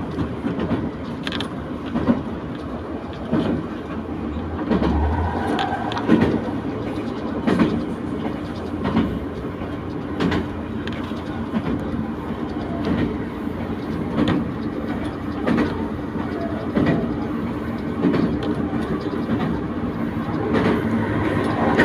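A diesel railcar rumbles along at speed.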